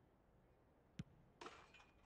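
A football is struck hard with a single thud.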